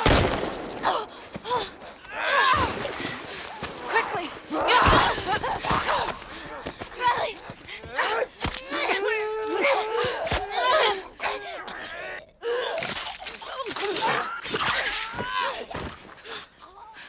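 A girl grunts and screams while struggling.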